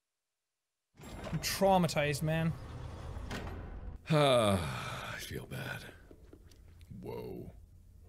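A second young man exclaims and laughs into a microphone.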